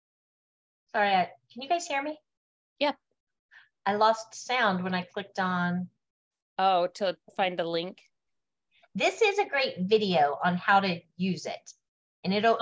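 A middle-aged woman speaks earnestly over an online call.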